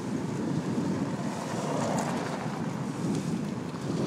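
A car passes by in the other direction.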